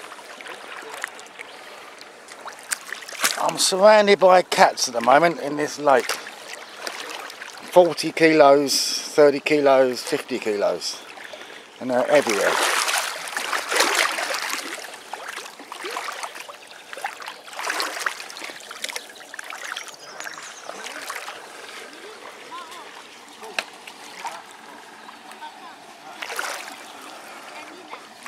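Shallow water laps and sloshes gently close by.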